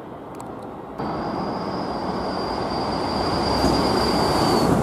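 A train rolls into a station with a steady high whine.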